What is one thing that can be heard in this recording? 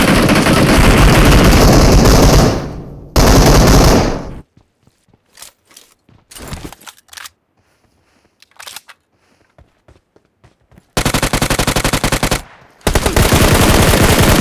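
Rifle shots fire in quick bursts.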